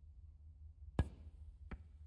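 A cue strikes a snooker ball with a sharp click.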